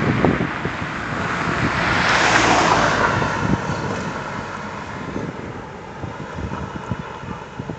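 A pickup truck drives past close by and fades down the road.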